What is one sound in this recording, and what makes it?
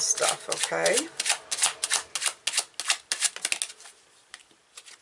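Playing cards are shuffled with quick, crisp flicks.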